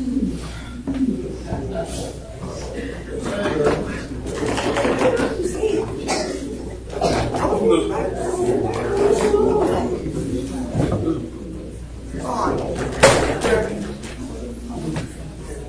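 A congregation of men and women sings together in a reverberant hall.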